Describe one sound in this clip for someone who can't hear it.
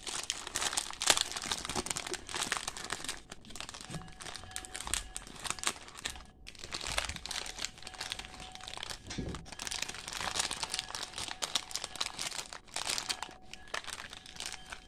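Plastic snack wrappers crinkle and rustle in a hand.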